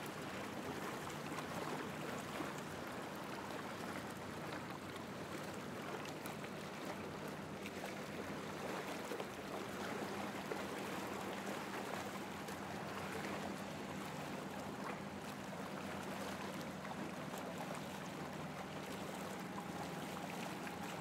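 Water laps and splashes against a hull.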